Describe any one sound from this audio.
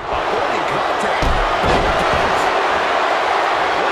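A body hits the ring mat with a thud.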